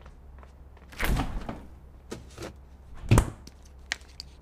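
A refrigerator door opens with a soft rush and a thump.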